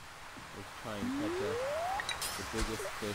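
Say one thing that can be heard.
A fishing line whips out with a swish.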